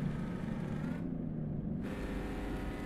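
A truck engine's pitch drops briefly as gears change.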